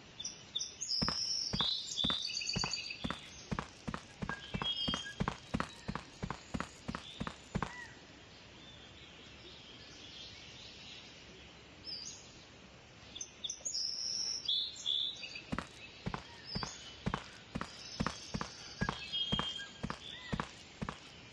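Footsteps walk at a steady pace across hard pavement.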